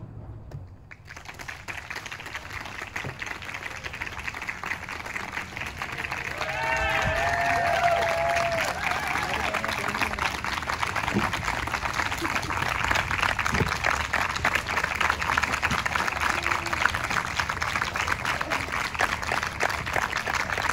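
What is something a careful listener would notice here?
A crowd applauds outdoors.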